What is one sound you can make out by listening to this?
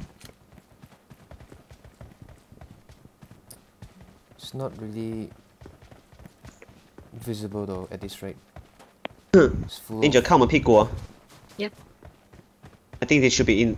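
Footsteps crunch over snowy ground.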